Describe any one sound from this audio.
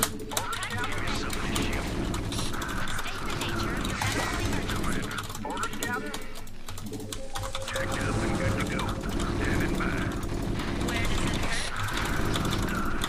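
Small weapons fire rapidly and explosions thump in a battle between game units.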